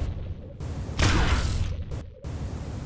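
An explosion booms close by with a loud rushing blast.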